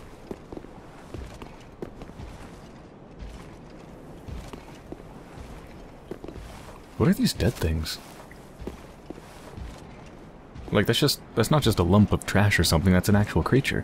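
Footsteps clank on stone.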